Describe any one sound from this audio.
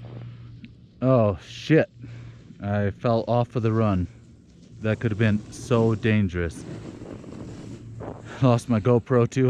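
A man talks with animation, close to the microphone, outdoors.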